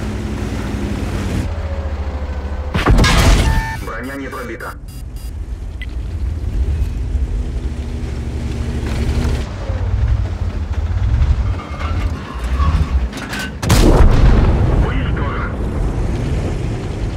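A tank engine rumbles low and steady.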